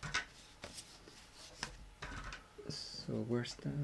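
A sheet of card slides and taps softly onto a table.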